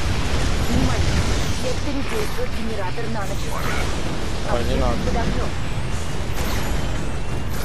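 Gunfire and explosions rumble and crackle in a dense, ongoing battle.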